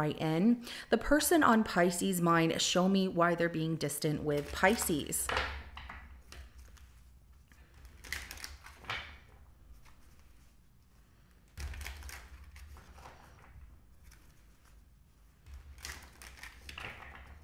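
Playing cards riffle and flick as they are shuffled by hand.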